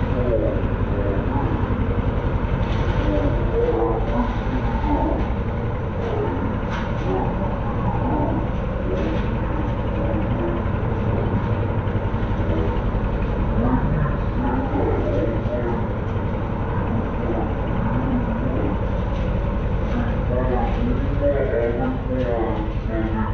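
A petrol lawn mower engine drones steadily nearby.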